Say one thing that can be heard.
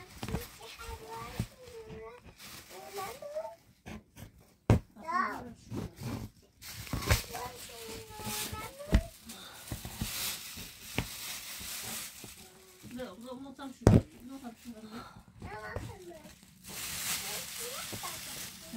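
Twine rustles and scrapes against stiff canvas close by.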